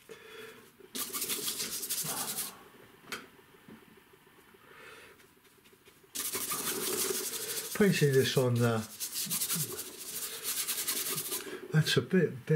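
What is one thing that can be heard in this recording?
A stiff brush scrubs paint onto paper.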